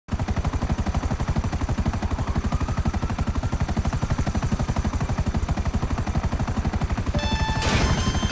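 Helicopter rotor blades thump rapidly and steadily close by.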